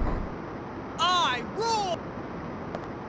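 A man shouts boastfully, close by.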